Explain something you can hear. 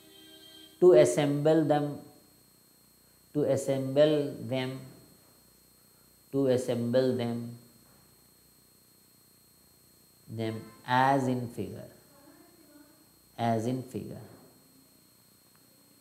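A man speaks slowly and calmly into a close microphone, in short phrases with pauses.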